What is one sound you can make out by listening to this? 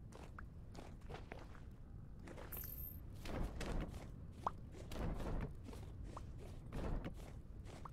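Footsteps thud softly on grass and gravel.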